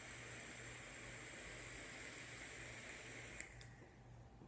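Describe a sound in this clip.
A vape device hisses and crackles softly as a man draws on it.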